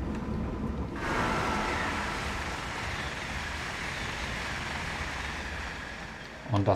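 A passing train rushes by with a loud whoosh of wind and wheels.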